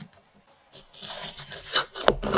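A fork cuts into soft cake.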